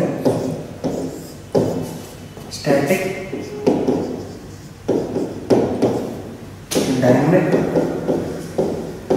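A man speaks steadily, like a teacher explaining, in a room with some echo.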